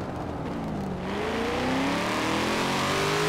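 A car engine revs up with rising pitch.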